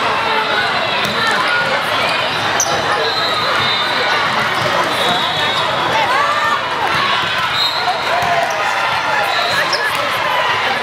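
Sneakers squeak sharply on a hard court, echoing in a large hall.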